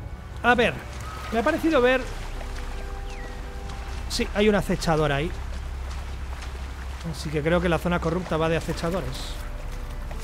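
Water splashes softly as someone wades through a shallow river.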